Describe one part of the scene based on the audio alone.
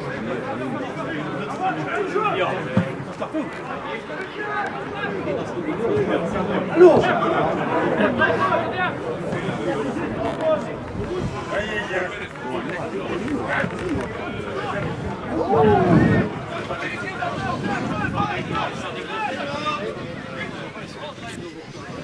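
Men shout and call to each other across an open outdoor field.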